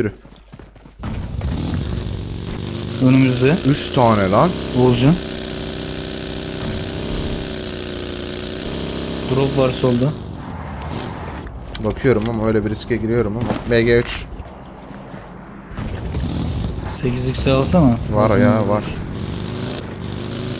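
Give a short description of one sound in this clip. A buggy engine drones and revs.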